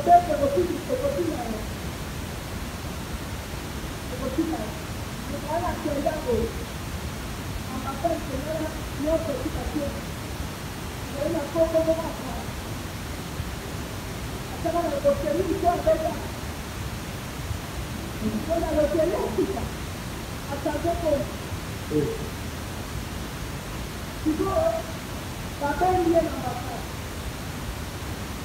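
A woman preaches loudly into a microphone through loudspeakers, in bursts with short pauses.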